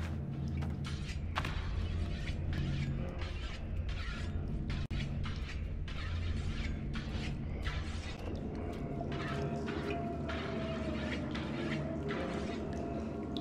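Small footsteps patter quickly across a tiled floor.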